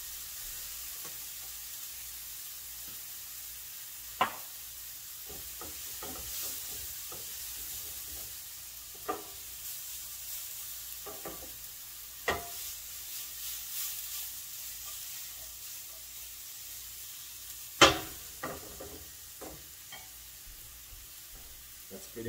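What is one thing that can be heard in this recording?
A spatula scrapes and knocks against a metal pan.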